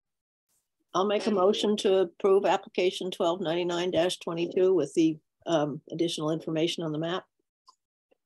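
An older woman speaks calmly over an online call.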